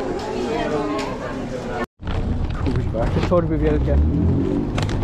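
Men talk in a crowd nearby.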